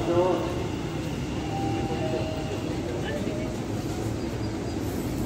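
A train rumbles along the tracks, approaching.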